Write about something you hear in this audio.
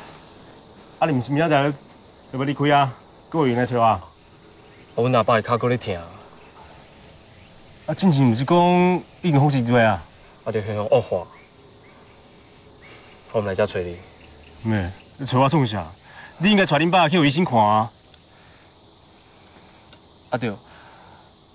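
A young man speaks calmly and close by, asking questions.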